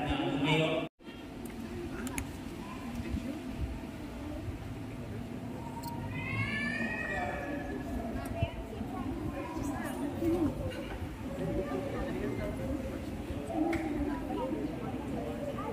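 People murmur quietly nearby in an echoing hall.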